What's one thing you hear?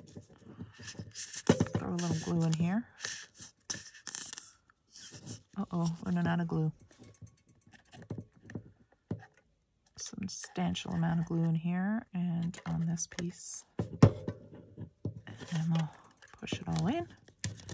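Paper rustles softly as hands fold it.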